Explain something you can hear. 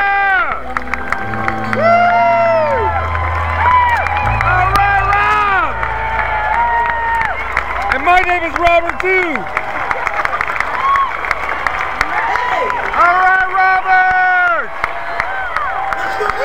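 A large crowd cheers and sings along outdoors.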